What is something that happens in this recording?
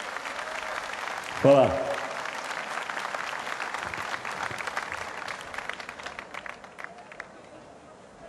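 A large crowd claps and cheers, then the applause fades away.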